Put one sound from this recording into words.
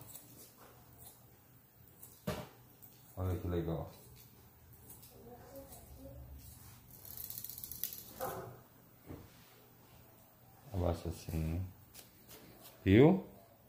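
Scissors snip through hair.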